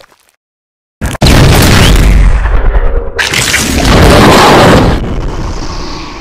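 A loud explosion booms and rumbles.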